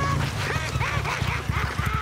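A motorcycle engine runs.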